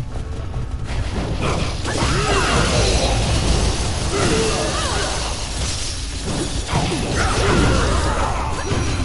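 Video game combat effects clash and whoosh.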